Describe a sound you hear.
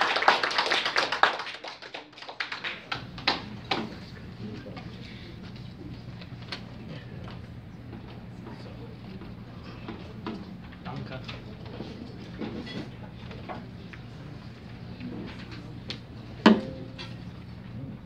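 Sheet music pages rustle and flap.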